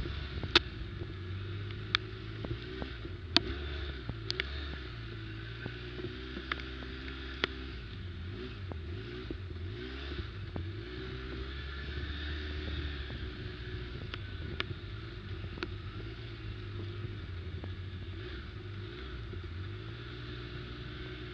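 Tyres crunch over leaves and twigs on a bumpy trail.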